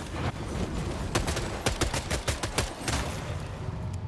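Rapid gunshots crack and echo.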